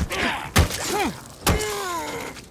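A wooden bat strikes a body with heavy thuds.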